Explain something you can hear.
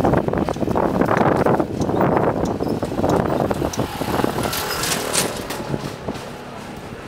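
A motor scooter engine hums loudly as it passes close by.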